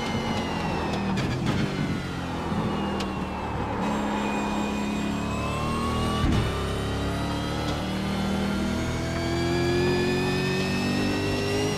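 A racing car engine roars loudly, its pitch climbing and dropping as it revs.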